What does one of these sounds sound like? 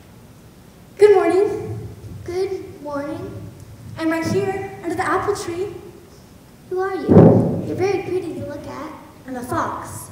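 A young actor speaks with animation on a stage, heard through a microphone.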